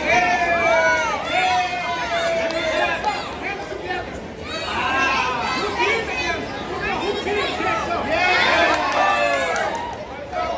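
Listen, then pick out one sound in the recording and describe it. A crowd of men and women shouts and cheers loudly in a large echoing hall.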